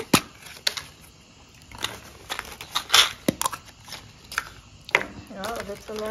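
Paper money rustles as hands sort it.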